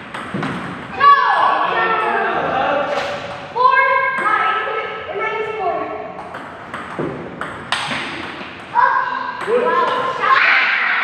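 Young boys shout and call out with animation nearby.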